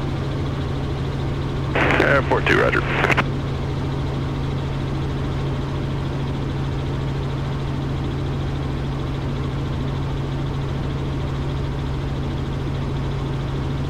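A helicopter engine and rotor drone steadily throughout.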